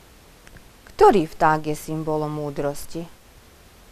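A middle-aged woman speaks calmly through a headset microphone.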